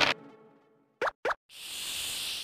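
A game piece clicks as it hops along the board.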